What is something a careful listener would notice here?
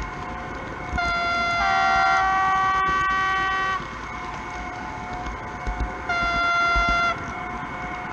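A model train horn sounds in long, loud blasts.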